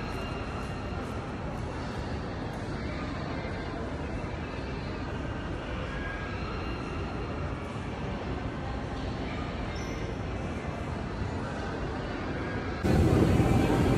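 A murmur of people echoes through a large indoor hall.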